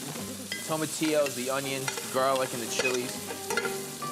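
A spoon scrapes vegetables out of a metal pan.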